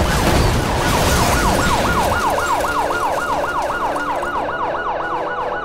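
Gravel scrapes and scatters under skidding tyres.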